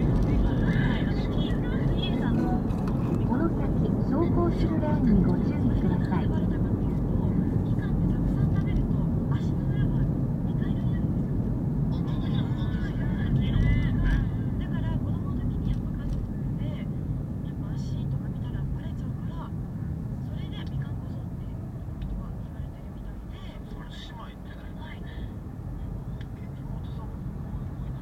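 Tyres rumble on the road surface and quieten as the car slows in traffic.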